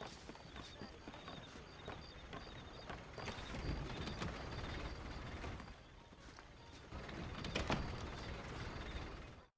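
Boots thud on wooden boards and stairs.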